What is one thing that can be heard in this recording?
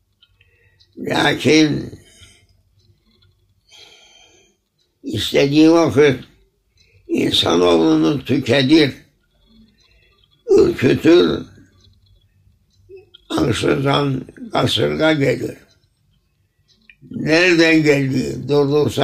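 An elderly man speaks slowly and calmly nearby, with long pauses.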